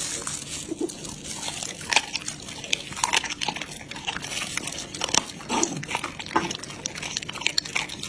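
A dog chews and crunches wetly on raw meat, close by.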